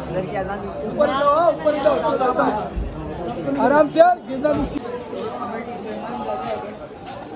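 A crowd of men chant and murmur close by.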